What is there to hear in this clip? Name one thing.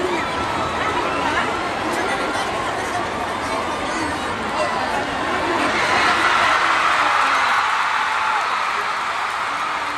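Young women shout and cheer together in celebration.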